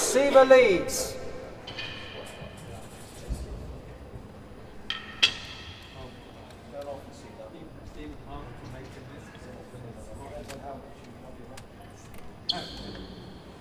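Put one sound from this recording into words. A ball is struck hard with a racket and thuds off the walls in an echoing hall.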